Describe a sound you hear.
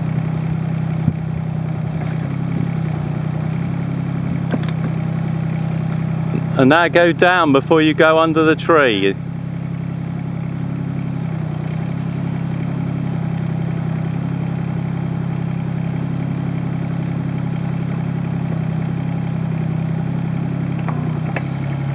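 A small diesel engine runs with a steady, low drone.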